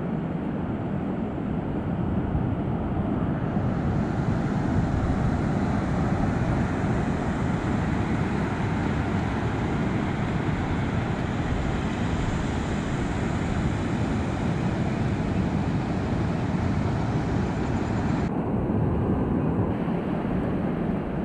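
Waves break and surf roars steadily on a shore.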